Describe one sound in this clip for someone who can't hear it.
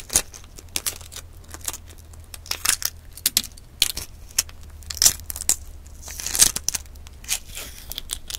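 Fingers peel the shell off a boiled egg, and the shell crackles close to the microphone.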